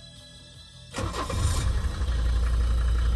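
A car engine cranks and starts.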